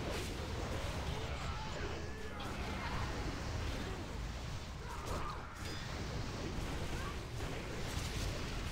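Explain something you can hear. Magic spells crackle and whoosh during a fantasy battle.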